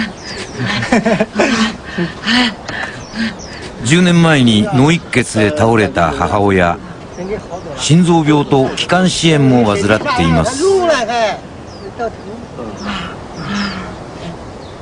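An elderly woman speaks with emotion, close by.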